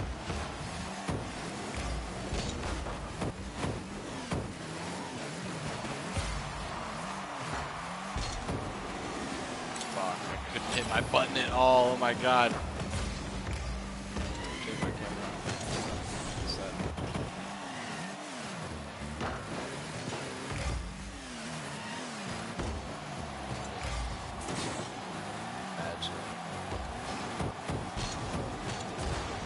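A car engine hums and revs steadily throughout.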